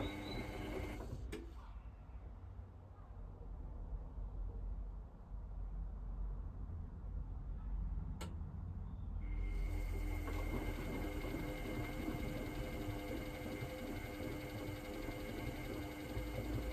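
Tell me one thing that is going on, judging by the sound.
Water and suds slosh inside a washing machine.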